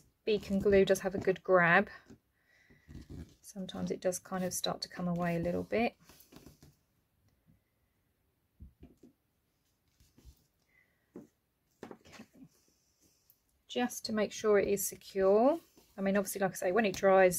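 Paper rustles and crinkles softly as hands fold and press it.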